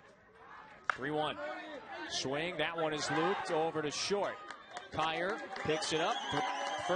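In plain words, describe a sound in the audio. A crowd cheers and shouts loudly outdoors.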